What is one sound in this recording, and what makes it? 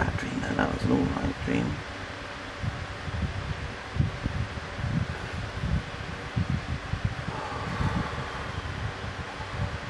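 A pen scratches and rubs softly on paper.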